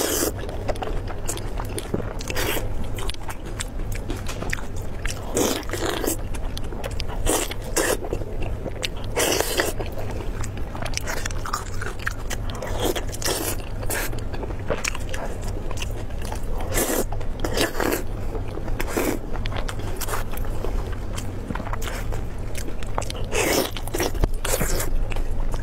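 A young woman chews and smacks her lips loudly, close to a microphone.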